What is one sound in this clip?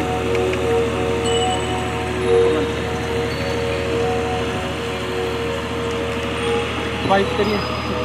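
Steady music plays over loudspeakers outdoors.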